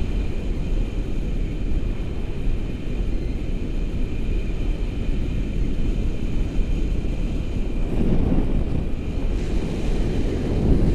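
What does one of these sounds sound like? Strong wind rushes and buffets loudly past the microphone.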